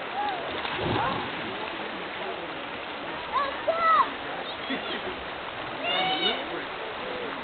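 Water splashes as swimmers move through a stream.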